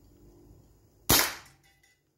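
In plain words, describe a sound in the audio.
A rifle fires a sharp shot close by.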